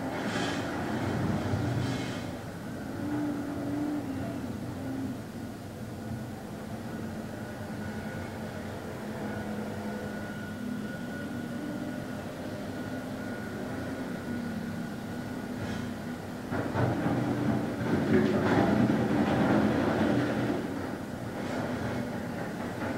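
A man hums a low, steady chant close by.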